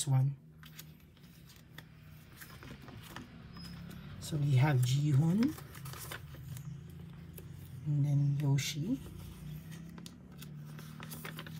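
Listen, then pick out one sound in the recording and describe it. Plastic album sleeves rustle and crinkle as pages are turned.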